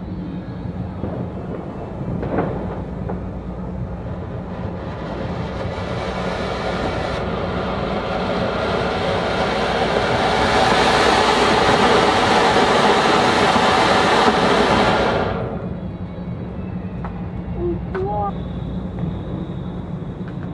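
A fountain firework sprays sparks outdoors with a roaring hiss.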